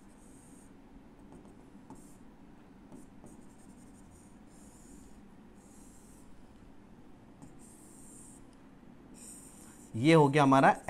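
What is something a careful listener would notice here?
A marker squeaks on a board.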